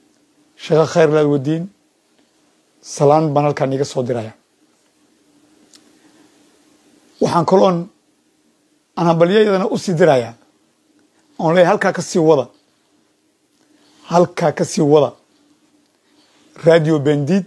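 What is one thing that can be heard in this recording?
A middle-aged man speaks with animation in short bursts over an online call.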